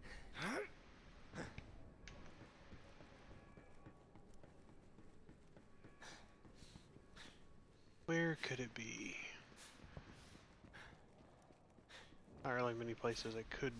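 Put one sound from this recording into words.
Flames crackle and hiss close by.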